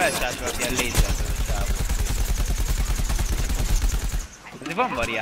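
A blaster fires rapid bursts of shots.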